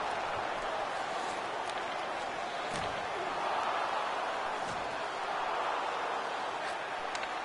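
A crowd murmurs steadily in a large arena.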